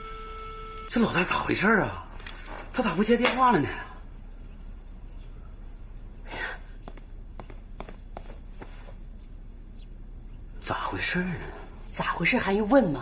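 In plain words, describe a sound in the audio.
A middle-aged man speaks with worry, close by.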